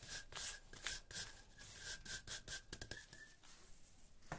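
A wire brush grinder scrubs a metal chain.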